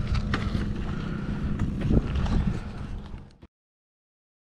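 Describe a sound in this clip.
A small dirt bike engine putters nearby.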